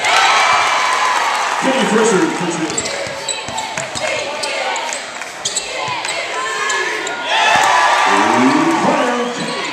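A crowd cheers and shouts loudly in a large echoing arena.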